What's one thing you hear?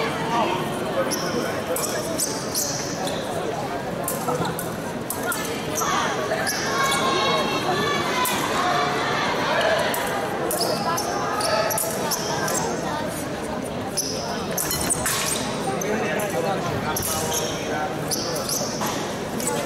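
Thin metal blades tap and clack against each other in quick bursts.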